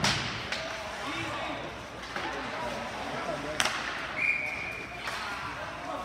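Hockey sticks clack sharply against a puck now and then.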